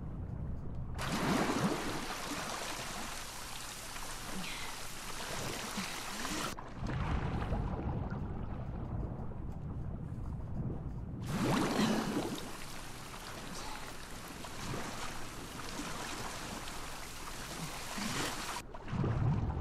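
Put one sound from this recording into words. Water splashes and laps as a swimmer paddles along the surface.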